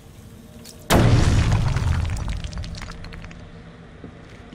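Rubble clatters to the ground.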